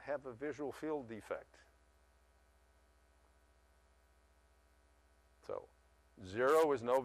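An elderly man speaks calmly through a microphone, pausing between phrases.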